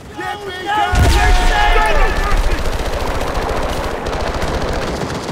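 A submachine gun fires in short bursts.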